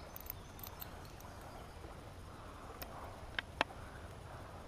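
A small metal fishing lure clicks and taps against a line.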